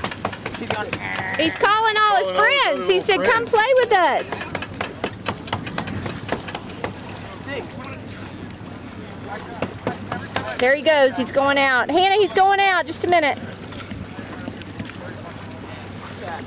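Swimmers splash through the water.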